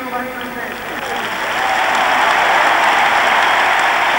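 A large crowd applauds loudly in a big echoing arena.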